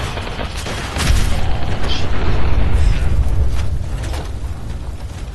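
A second explosion booms and rumbles.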